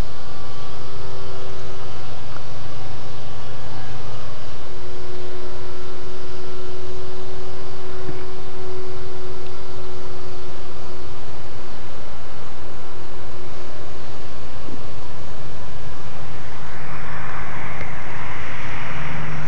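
A small plane's engine drones steadily overhead.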